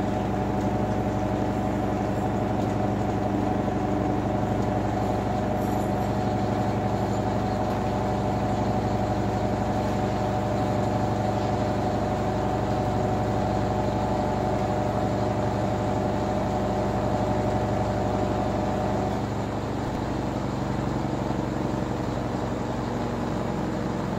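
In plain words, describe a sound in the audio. A washing machine drum spins with a steady whirring hum.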